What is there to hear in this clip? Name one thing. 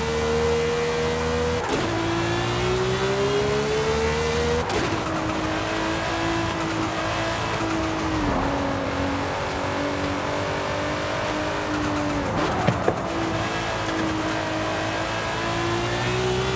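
A racing car engine roars at high revs, shifting gears with sharp drops in pitch.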